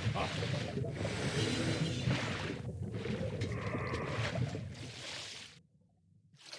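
Water rushes and bubbles around a swimmer underwater.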